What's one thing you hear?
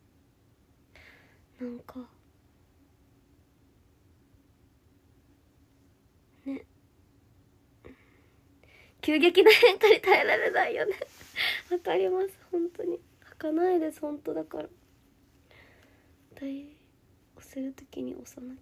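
A young woman talks close to the microphone in short bursts with pauses.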